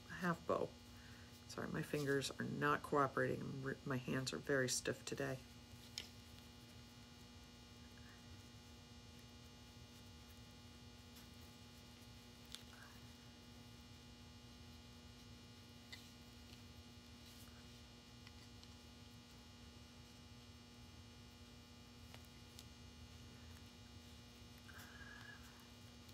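Ribbon rustles softly between fingers.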